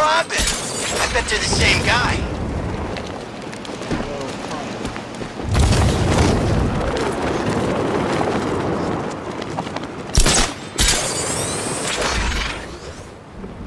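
Wind rushes past loudly in swelling gusts.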